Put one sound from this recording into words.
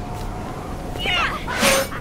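A spear swings through the air with a sharp whoosh.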